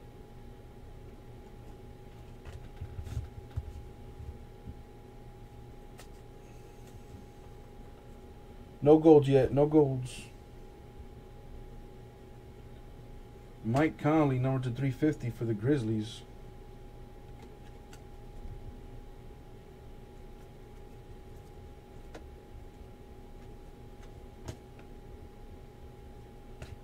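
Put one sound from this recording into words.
Trading cards rustle and flick softly as they are sorted by hand.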